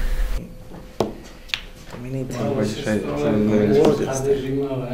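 A wooden chess piece clicks down on a board.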